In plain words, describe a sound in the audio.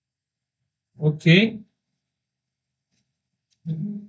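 A man speaks briefly and calmly close to a microphone.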